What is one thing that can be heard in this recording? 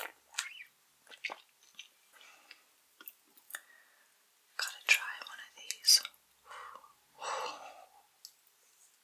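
A woman whispers softly close to a microphone.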